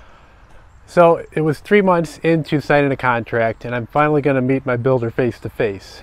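A middle-aged man talks calmly and close through a clip-on microphone.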